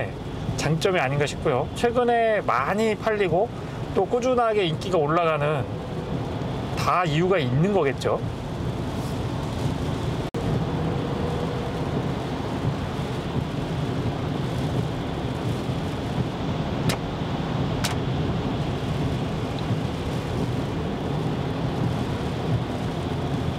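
Rain patters on a car's windshield.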